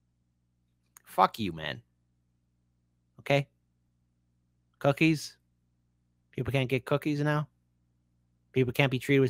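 A man speaks in short, halting phrases through a microphone.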